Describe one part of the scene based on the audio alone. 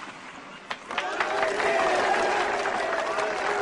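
A crowd of men cheers and shouts excitedly.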